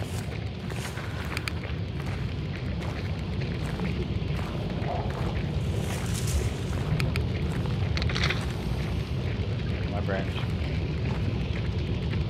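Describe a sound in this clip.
Footsteps crunch and rustle through dry undergrowth.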